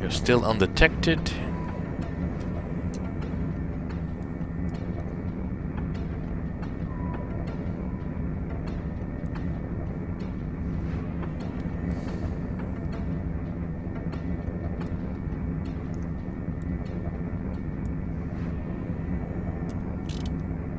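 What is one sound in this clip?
Spacecraft engines rumble steadily.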